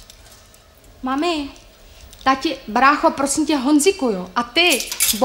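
A young woman sings loudly and expressively, close by.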